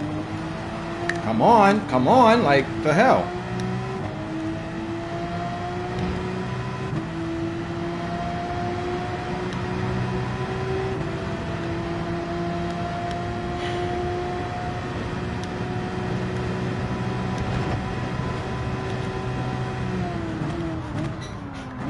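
A racing car engine drones steadily, its pitch climbing slowly through the gears and then dropping as it slows.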